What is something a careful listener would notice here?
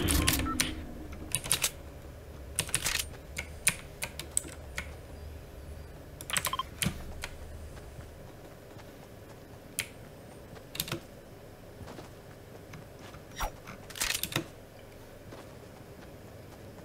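Quick footsteps patter as a game character runs.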